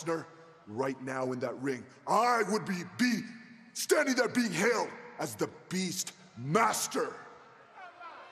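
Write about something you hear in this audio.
A man speaks angrily and forcefully into a microphone.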